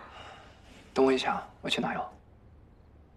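A young man speaks gently and close by.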